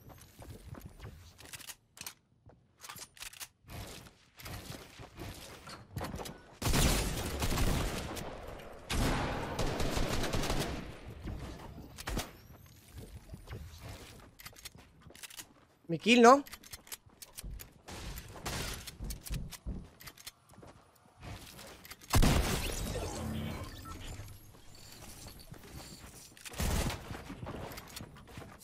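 Quick clicks and knocks of building and gunfire in a video game sound throughout.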